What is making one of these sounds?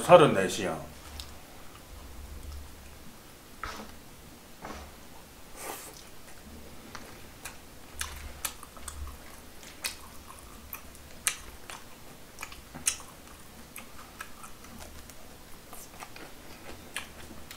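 A young man chews and slurps food loudly close to a microphone.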